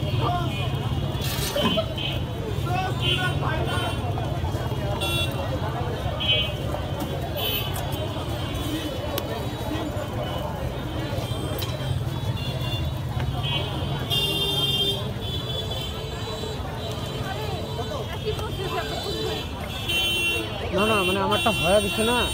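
A busy outdoor crowd chatters steadily in the background.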